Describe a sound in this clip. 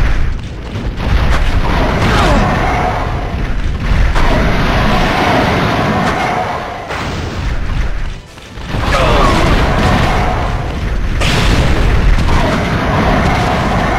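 A heavy gun fires in sharp bangs.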